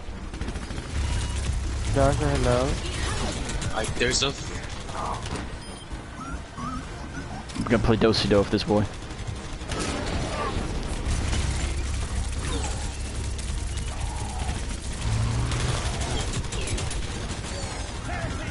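A heavy gun fires rapid bursts of shots.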